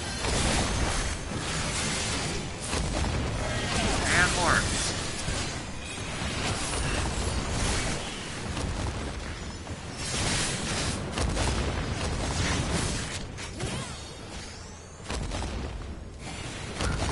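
Music plays in the background.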